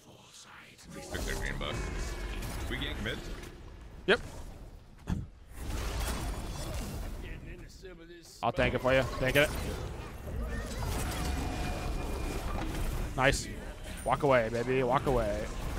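Fantasy game effects whoosh, blast and clash.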